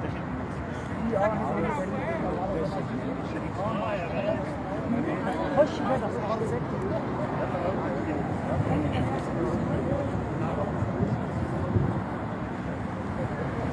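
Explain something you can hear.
Several men talk and call out outdoors nearby.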